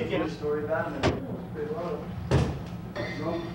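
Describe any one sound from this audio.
Equipment knocks and clunks on a stage.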